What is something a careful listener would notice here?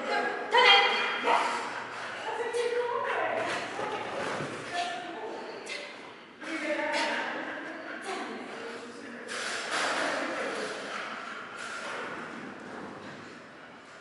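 A woman calls out commands loudly in a large echoing hall.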